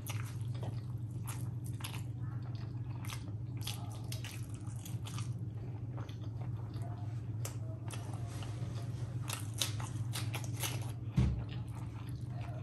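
Fingers squelch through saucy rice.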